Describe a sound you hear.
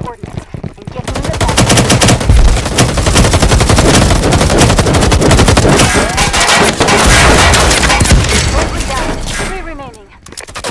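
Rapid gunfire rattles loudly and echoes.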